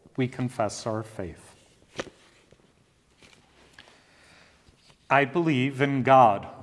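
An elderly man speaks calmly and reads out into a microphone, with a slight echo.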